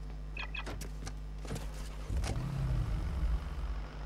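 A vehicle door opens and slams shut.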